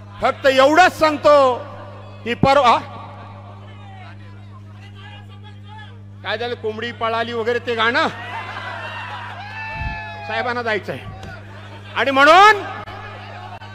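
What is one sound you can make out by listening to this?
A middle-aged man speaks forcefully into a microphone over a loudspeaker, in bursts.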